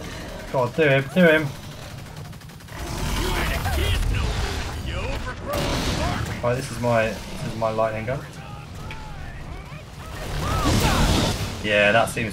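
An energy gun crackles and hums as it fires in bursts.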